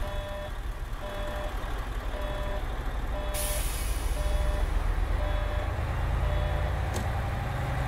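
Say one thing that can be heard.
A turn signal ticks steadily.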